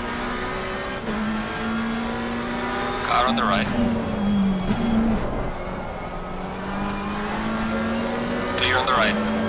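A racing car engine roars steadily, rising and dropping in pitch as the gears change.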